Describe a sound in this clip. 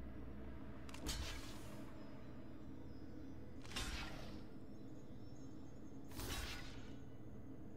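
Short whooshing game effects sound as cards strike.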